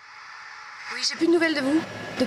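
A young woman speaks into a phone close by.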